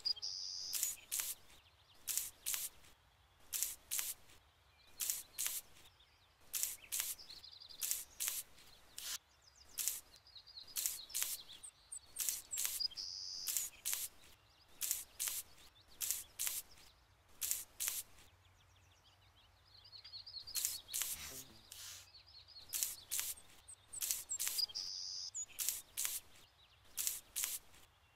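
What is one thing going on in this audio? A paint brush swishes over a wall in short paired strokes.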